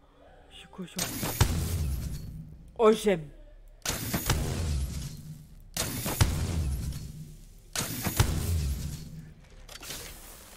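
Heavy gunfire booms in short bursts with a ringing echo.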